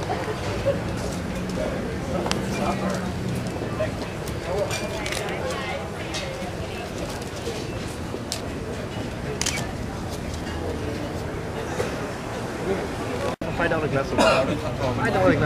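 Adults chat over a steady murmur of many voices indoors.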